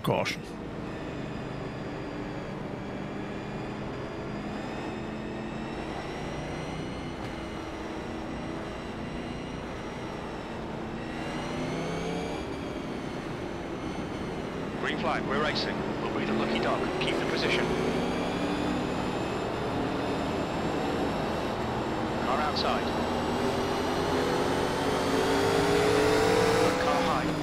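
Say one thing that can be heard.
A race car engine roars steadily, its pitch rising and falling as it shifts gears.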